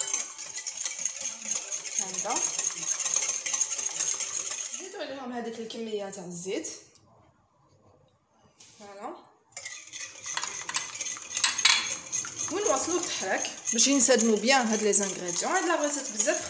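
A spoon and a whisk beat batter briskly in a glass bowl, scraping and clinking.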